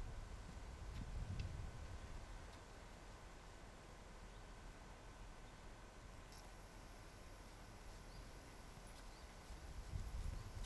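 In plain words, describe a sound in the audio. A horse trots softly over grass.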